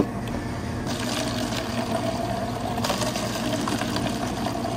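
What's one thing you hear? Water pours from a machine into a plastic cup.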